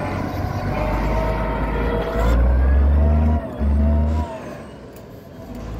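A tractor engine rumbles loudly close by and grows quieter as it pulls away.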